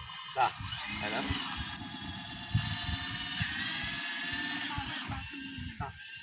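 A small electric motor whines.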